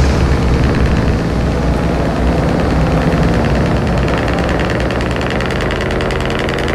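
Tyres rumble on an asphalt road.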